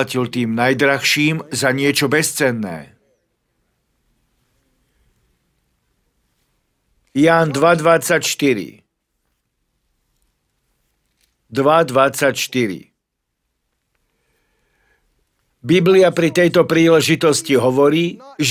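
A middle-aged man preaches with animation into a microphone, pausing between phrases.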